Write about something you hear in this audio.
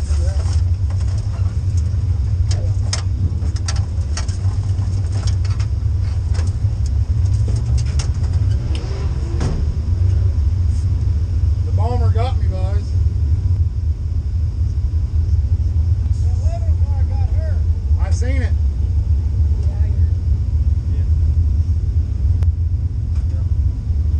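The V8 engine of a dirt late model race car idles with a deep rumble, heard from inside the car.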